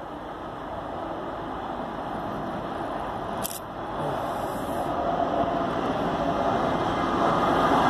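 A diesel locomotive rumbles closer, growing steadily louder.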